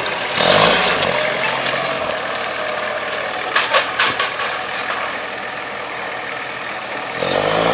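A forklift engine hums as it drives across a yard.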